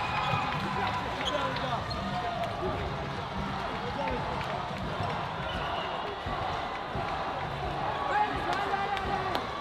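Shoes squeak on a hall floor.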